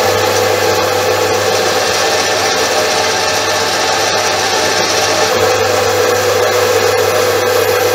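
A cutting tool scrapes metal off a spinning workpiece.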